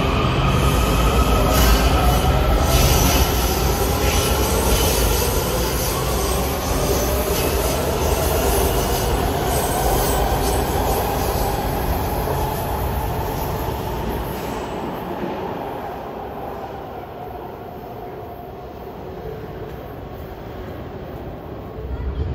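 A subway train rumbles and rattles along the tracks, echoing through a large station hall.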